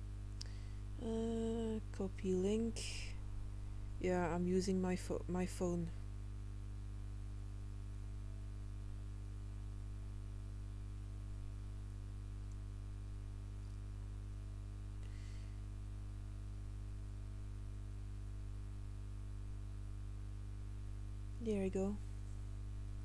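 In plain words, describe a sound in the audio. A young woman speaks briefly and casually into a headset microphone.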